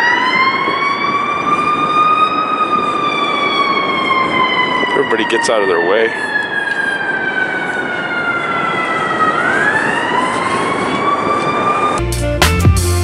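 A siren wails steadily nearby, rising and falling slowly.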